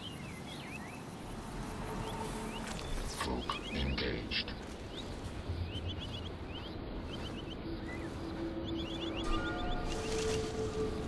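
Footsteps crunch softly on the ground.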